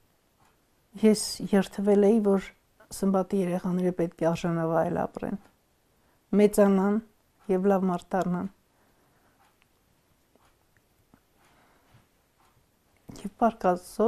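A middle-aged woman speaks calmly and close by, in short bursts with pauses.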